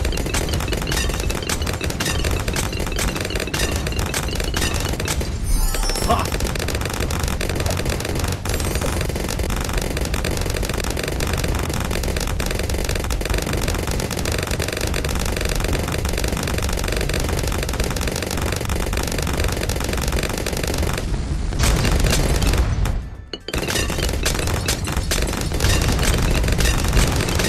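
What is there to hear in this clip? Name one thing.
Cartoon balloons pop in rapid, constant bursts.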